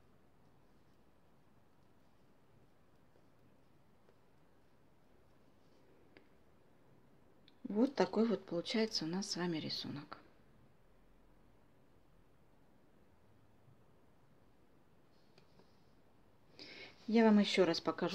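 Knitting needles click softly against each other.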